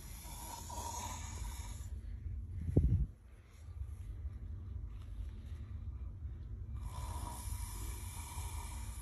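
A man snores loudly.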